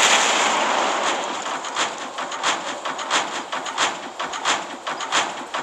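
Heavy guns fire in rapid, sharp bursts.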